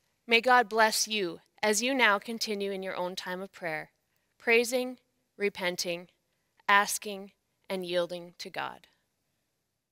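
A woman speaks calmly into a microphone nearby.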